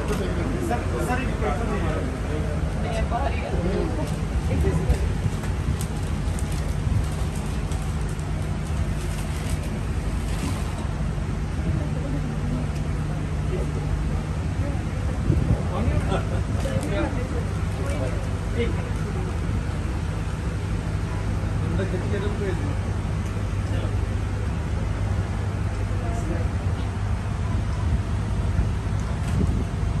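Several men and women talk and chatter nearby in a lively crowd.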